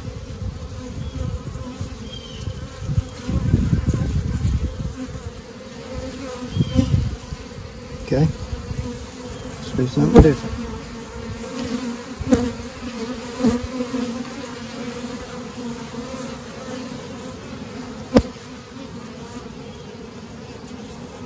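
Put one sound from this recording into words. Bees buzz close by.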